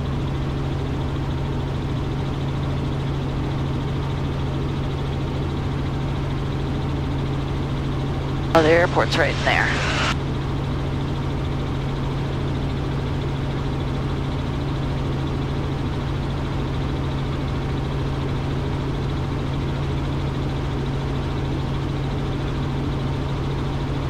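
A helicopter engine and rotor drone steadily throughout.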